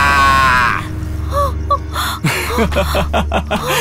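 A young man laughs loudly and cheers.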